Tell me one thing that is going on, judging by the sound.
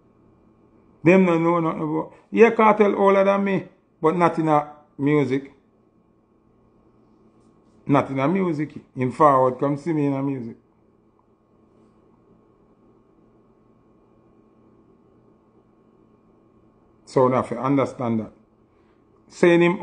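A young man speaks close to a microphone in short bursts, with pauses.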